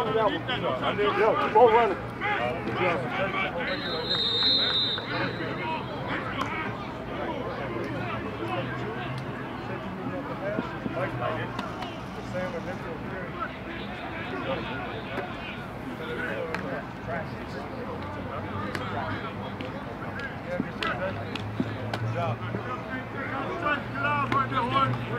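Several men talk and call out outdoors in the distance.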